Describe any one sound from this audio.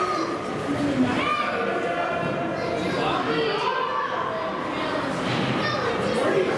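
Young players shout to each other across an echoing rink.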